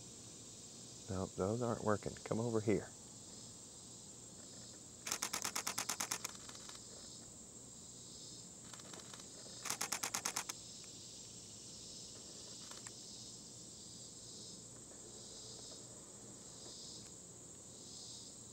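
A hummingbird's wings hum softly as it hovers close by.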